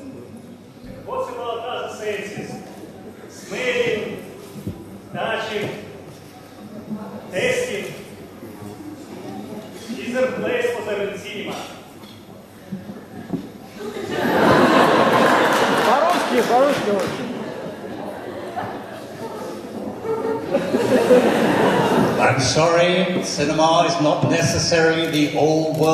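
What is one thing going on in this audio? An elderly man speaks with animation into a microphone, in an echoing hall.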